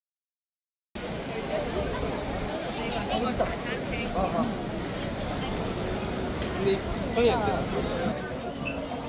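A crowd murmurs on a busy street.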